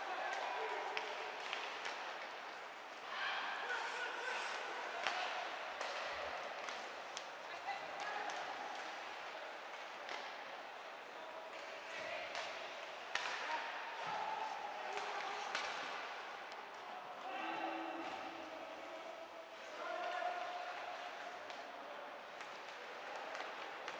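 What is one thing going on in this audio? Hockey sticks click sharply against a puck.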